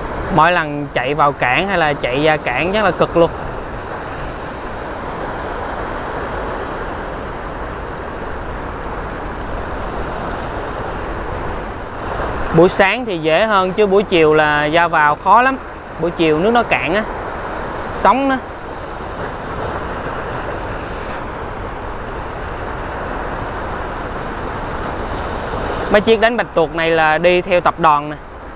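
Rough sea waves wash and churn steadily.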